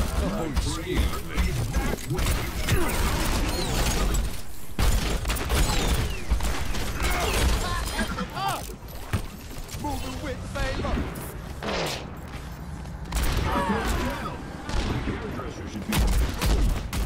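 A revolver fires in sharp, quick shots.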